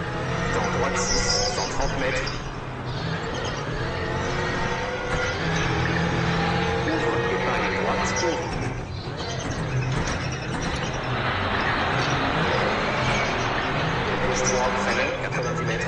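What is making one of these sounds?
A rally car engine roars and revs up and down as the car races.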